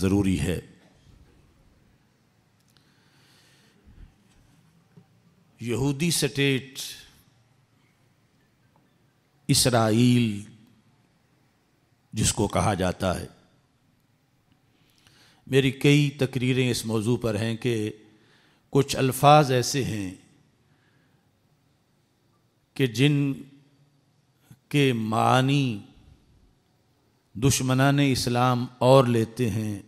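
A middle-aged man speaks into a microphone in measured bursts with long pauses.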